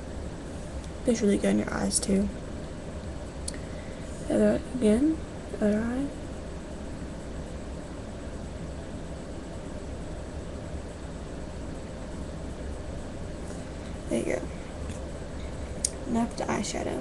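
A young woman speaks briefly and casually close to a microphone.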